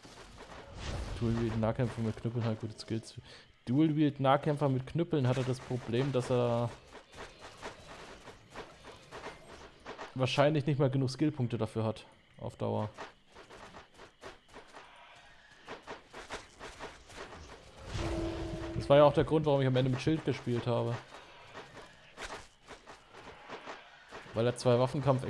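A young man talks into a close microphone with animation, in bursts.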